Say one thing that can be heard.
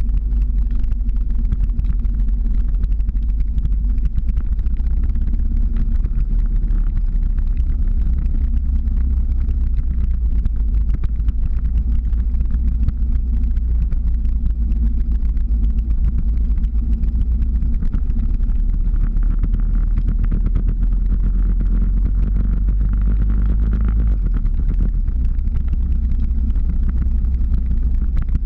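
Skateboard wheels roll and rumble steadily on asphalt.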